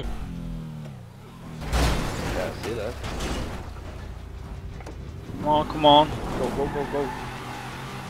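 A car body crunches and thuds as it rolls over.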